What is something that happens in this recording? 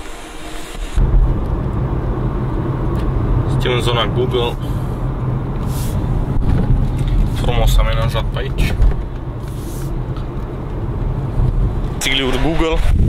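A car's engine and tyres hum steadily from inside the car.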